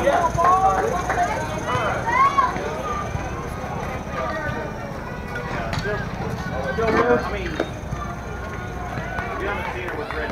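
Young women shout and cheer across an open outdoor field.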